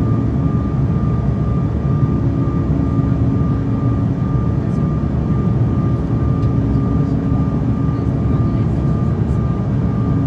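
Jet engines roar steadily inside an airliner cabin in flight.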